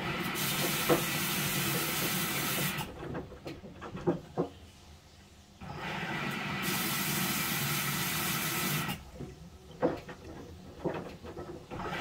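A front-loading washing machine tumbles wet laundry through water.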